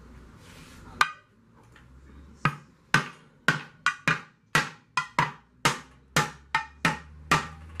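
A hammer strikes a metal pot with sharp ringing taps, in a quick uneven rhythm.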